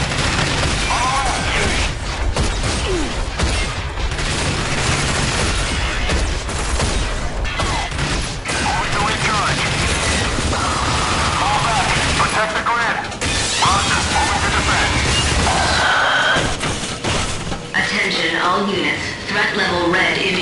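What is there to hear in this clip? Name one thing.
Creatures shriek and snarl.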